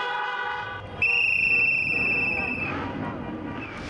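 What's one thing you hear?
Car horns honk repeatedly.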